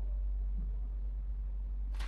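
A pastry brush dabs softly on dough.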